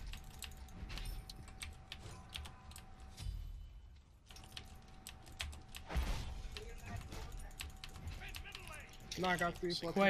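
Sharp game combat sounds clash and thud repeatedly.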